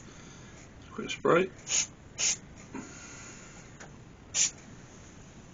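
An aerosol spray can hisses in short bursts.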